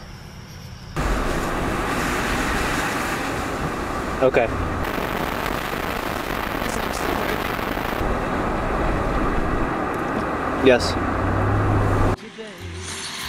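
Road noise rumbles steadily inside a moving car.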